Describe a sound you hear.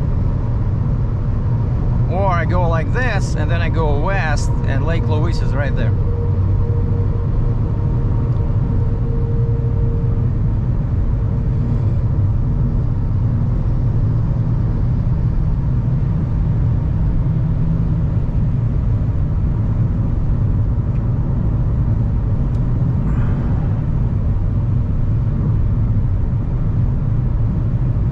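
A car engine hums steadily and tyres roar on a highway from inside the car.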